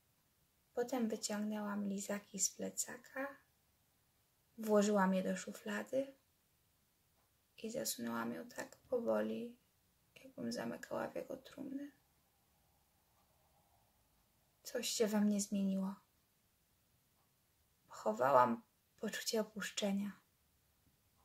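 A young woman speaks calmly and closely, in short phrases with pauses.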